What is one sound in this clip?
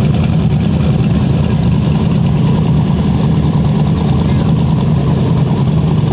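A modified street-race pickup engine idles with a deep, loping rumble.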